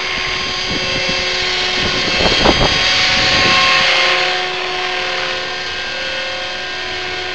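A model helicopter's small motor whines steadily at a high pitch.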